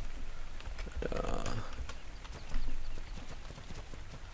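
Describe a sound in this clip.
A horse's hooves thud on the ground.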